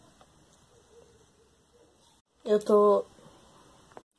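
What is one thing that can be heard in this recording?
A small plastic toy drops and taps onto a hard surface.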